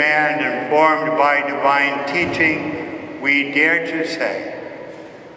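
A man sings slowly through a microphone in a large echoing hall.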